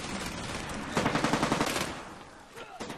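A rifle fires in rapid bursts close by.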